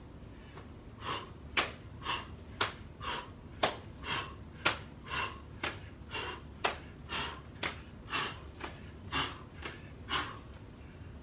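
An elderly man calls out short sounds in a quick, steady rhythm.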